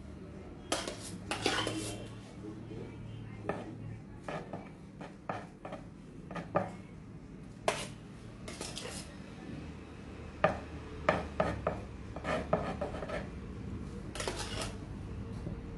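A metal spoon scrapes and knocks against a metal bowl.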